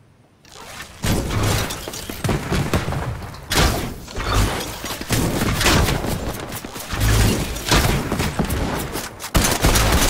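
A bow twangs as arrows are loosed, again and again.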